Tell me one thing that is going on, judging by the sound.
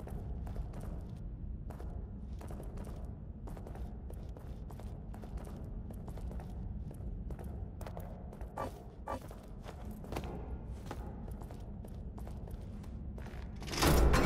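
Footsteps fall on a stone floor.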